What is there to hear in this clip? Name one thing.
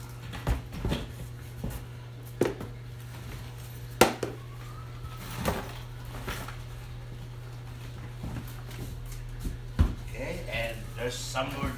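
Objects clatter and rustle as a man rummages through them.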